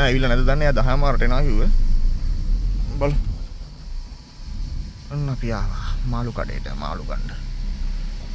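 A person talks close to the microphone.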